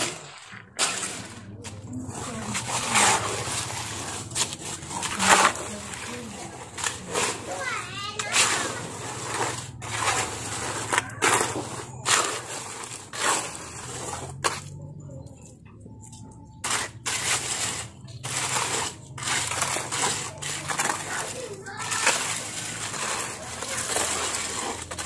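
A shovel scrapes and grates over wet concrete on the ground.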